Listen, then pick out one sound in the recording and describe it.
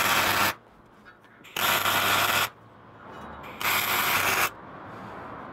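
An arc welder crackles and buzzes in short bursts.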